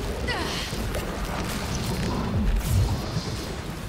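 A crackling lightning strike lands with a deep, rumbling boom.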